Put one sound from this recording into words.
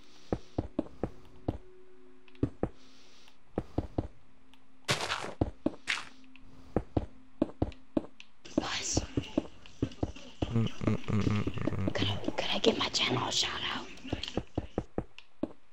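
Blocks break with quick crunching pops, again and again.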